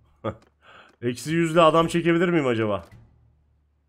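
A man speaks animatedly, close to a microphone.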